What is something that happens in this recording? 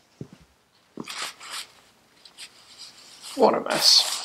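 A paper towel rustles and crinkles as a hand wipes with it.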